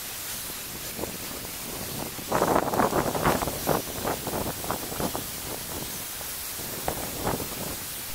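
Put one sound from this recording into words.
Leafy plants rustle and snap as they are pulled by hand.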